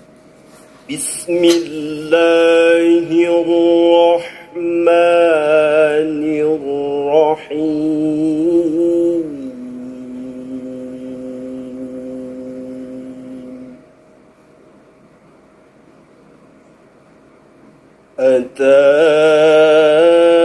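A young man chants melodically into a microphone, with long held notes.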